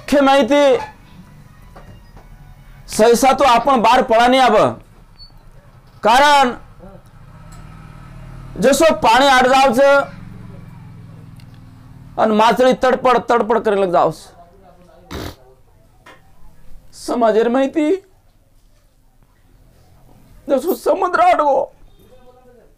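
An elderly man speaks slowly and clearly in bursts, close to a microphone, with pauses between phrases.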